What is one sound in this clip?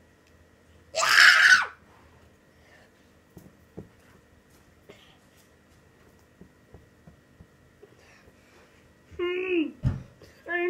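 A young child shouts and squeals close by.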